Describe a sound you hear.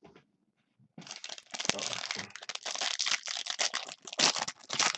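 A foil wrapper crackles as a pack is torn open.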